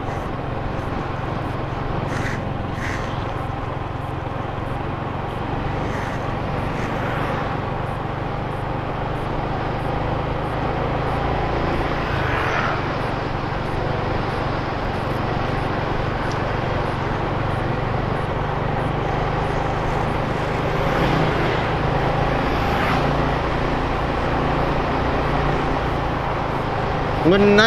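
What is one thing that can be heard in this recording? A motorcycle engine hums steadily while riding along a road.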